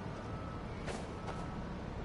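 Footsteps crunch quickly on packed snow.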